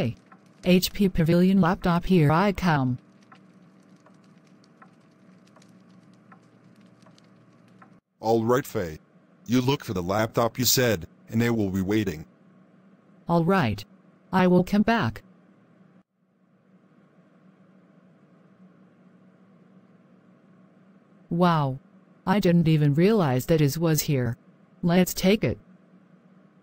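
A young woman speaks with excitement, close by.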